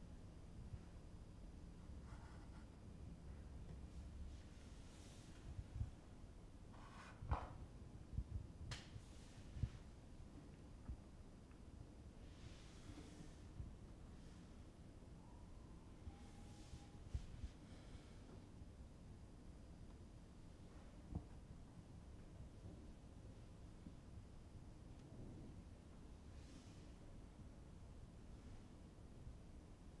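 Wooden chess pieces knock softly on a board.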